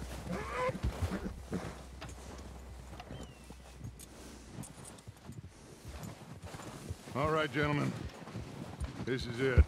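Horses trudge through deep snow, hooves crunching.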